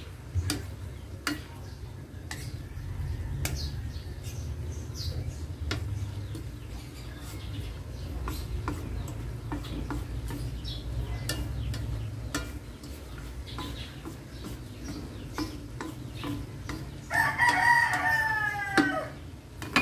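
A wooden spatula scrapes and taps against a pan while stirring.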